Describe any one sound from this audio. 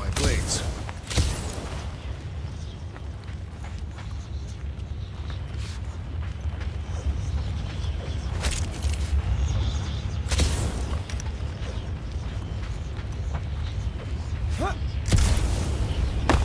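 Jet boots roar in short bursts.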